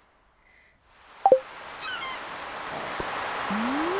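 Water laps gently against a wooden pier.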